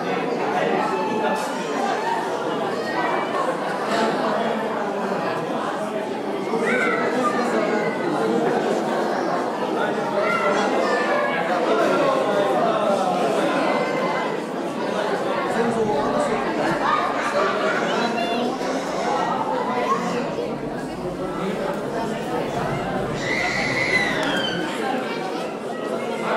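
A crowd of men, women and children chatters throughout a large echoing hall.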